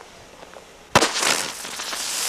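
A firework explodes with a loud bang.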